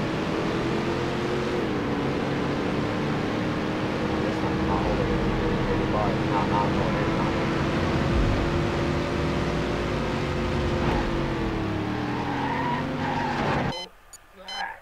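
A car engine roars at high speed, its pitch shifting as it changes gear.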